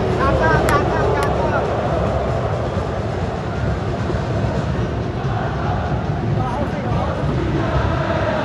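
A large stadium crowd chants and sings loudly, echoing under the roof.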